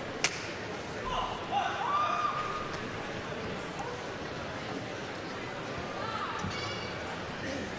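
Sneakers squeak on a court floor in a large echoing hall.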